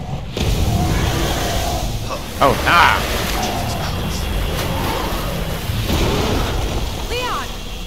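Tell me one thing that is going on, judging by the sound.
A young man talks animatedly.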